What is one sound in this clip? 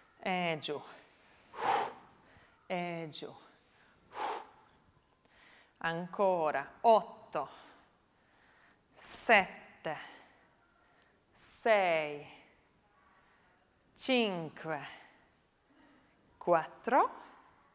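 A woman speaks with animation through a microphone, in short bursts.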